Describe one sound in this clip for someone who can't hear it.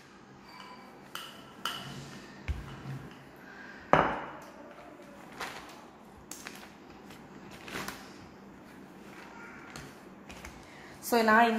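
A plastic sheet crinkles and rustles as it is folded.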